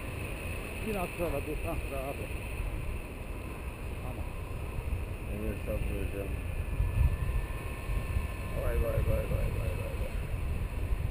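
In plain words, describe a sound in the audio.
A man talks loudly over the wind, in short bursts.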